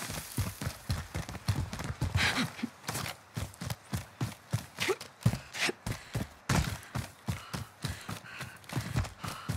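Footsteps run quickly.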